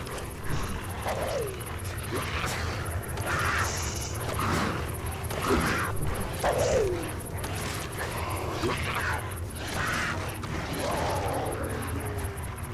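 Footsteps rustle through grass and leafy undergrowth.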